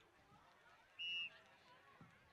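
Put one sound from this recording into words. A referee blows a short whistle.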